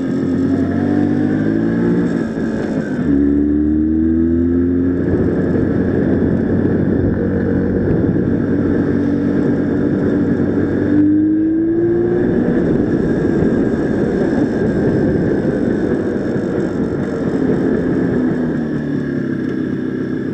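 A motorcycle engine hums and revs up and down as the bike rides along.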